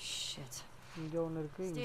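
A young woman mutters a short curse close by.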